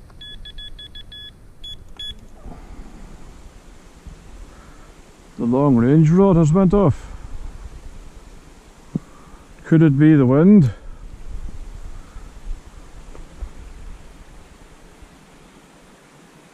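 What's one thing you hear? Wind blows lightly outdoors.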